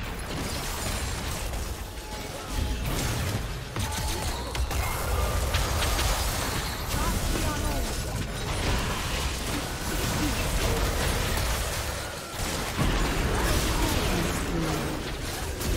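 Game spells burst and crackle during a fast battle.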